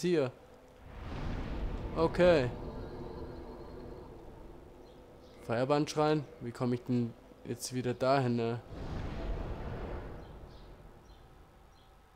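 A deep rushing whoosh swells and slowly fades.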